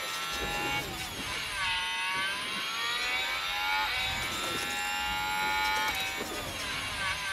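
A racing car engine screams at high revs, its pitch rising and dropping through gear changes.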